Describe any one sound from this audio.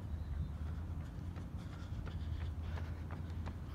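Running footsteps patter on a track and come close.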